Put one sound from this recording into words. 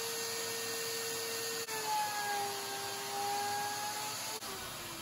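A wood router whines steadily as it cuts, its pitch dipping and shifting.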